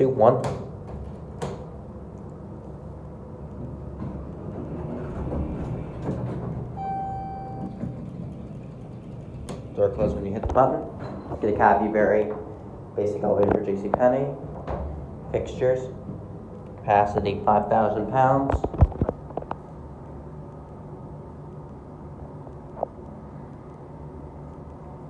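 An elevator motor hums low and steadily.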